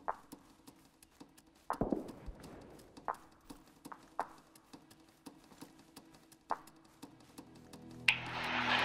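Footsteps crunch on gravel and dry grass.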